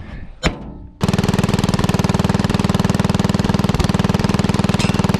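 A tractor engine runs steadily close by.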